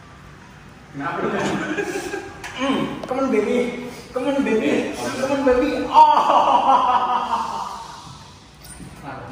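Young men talk and laugh with animation nearby.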